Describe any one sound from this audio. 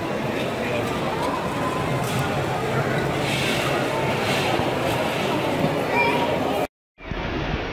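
A toy train rattles along a plastic track.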